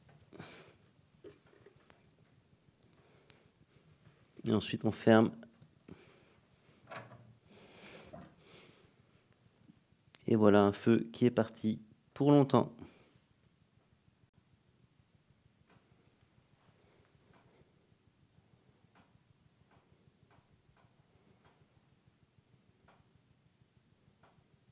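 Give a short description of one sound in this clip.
A wood fire crackles in a wood stove.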